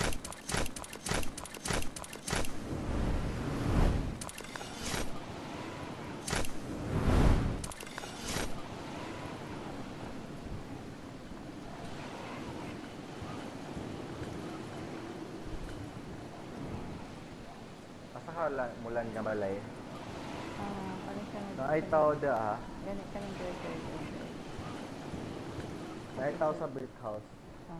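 Wind rushes steadily past during a long glide through the air.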